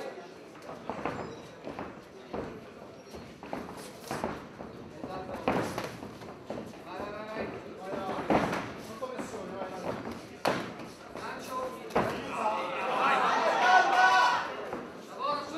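Gloved punches and kicks land with dull thuds.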